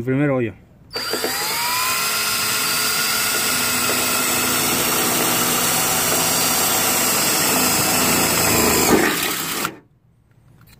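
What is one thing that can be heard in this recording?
A cordless drill whirs steadily as it bores through sheet metal.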